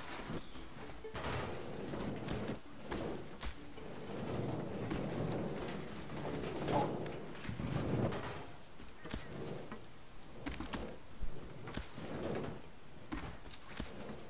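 A wooden cart rolls and creaks over rough ground.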